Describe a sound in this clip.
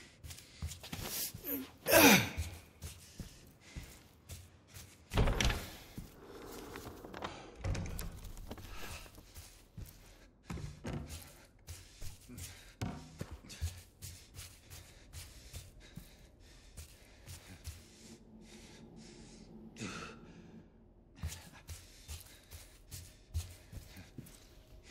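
Footsteps tread slowly on a creaking wooden floor.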